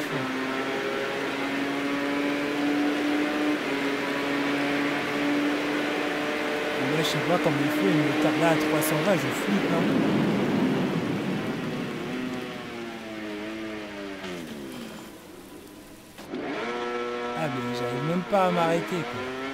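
A motorcycle engine roars at high revs, rising and falling as it shifts gears.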